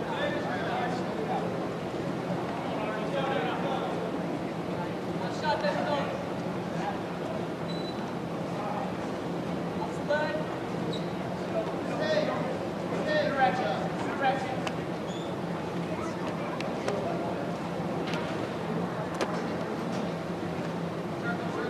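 A crowd of spectators murmurs and shouts in a large echoing gym.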